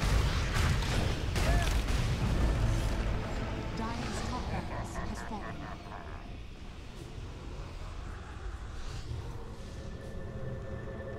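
A deep rumbling battle din fades to a quieter hum.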